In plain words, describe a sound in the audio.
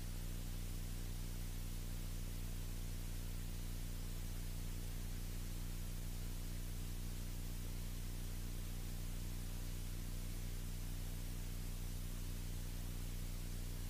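Wind rushes steadily past the plane.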